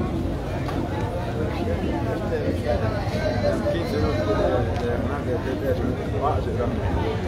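A crowd of men and women talks all around outdoors.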